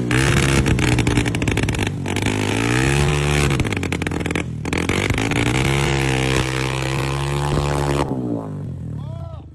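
A motorcycle engine revs loudly, rising and falling.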